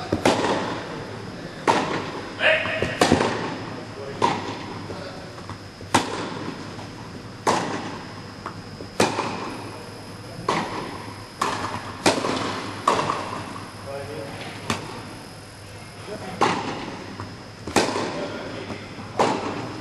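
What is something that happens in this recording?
Rackets strike a tennis ball back and forth, with sharp echoing pops in a large hall.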